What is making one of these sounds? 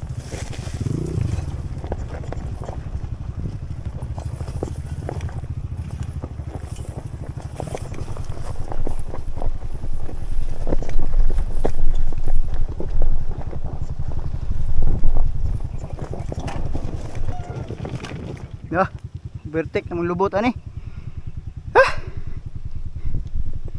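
A motorbike engine rumbles steadily up close.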